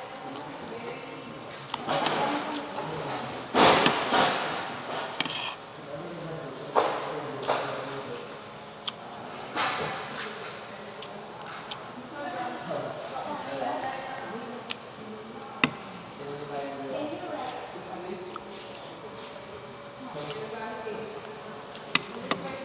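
A metal spoon scrapes and clinks against a plate.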